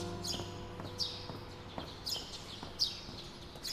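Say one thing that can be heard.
A woman's heels click on pavement as she walks.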